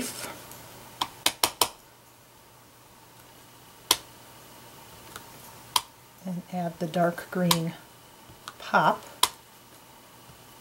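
A rubber stamp taps and presses onto paper.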